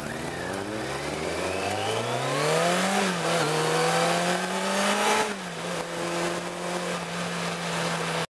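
A motorcycle engine runs ahead on the road.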